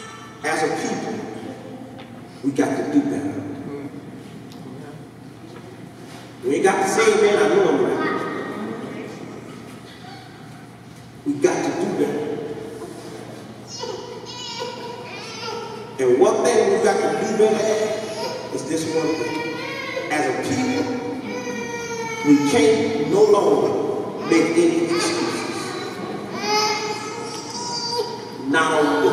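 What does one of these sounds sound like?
A man speaks with animation through a microphone and loudspeakers in a reverberant hall.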